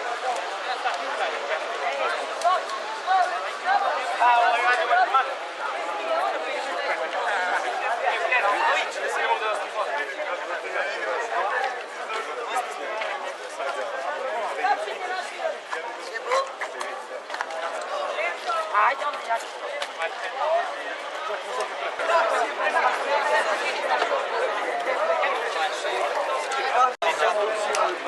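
A crowd of young people chatters and shouts outdoors.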